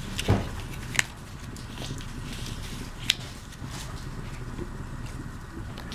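Paper cards rustle in a person's hands.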